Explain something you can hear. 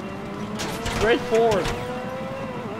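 Car tyres screech in a short skid.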